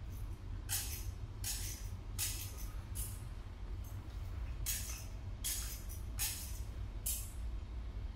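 A metal censer swings on its chains, jingling rhythmically.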